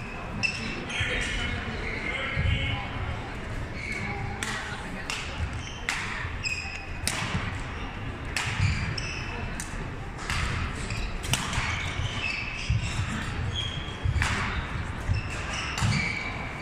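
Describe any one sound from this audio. Shoes squeak sharply on a hard court floor in a large echoing hall.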